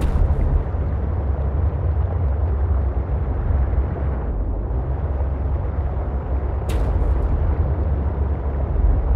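A submarine's engine hums low and steady underwater.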